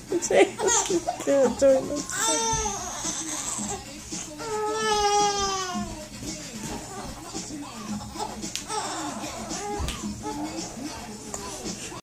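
A young girl sings loudly and energetically close by.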